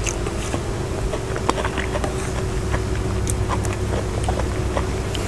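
A woman chews and smacks her lips close to a microphone.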